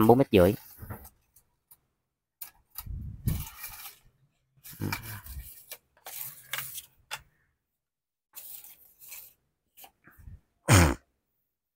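A fishing rod's metal sections click and scrape as hands twist them.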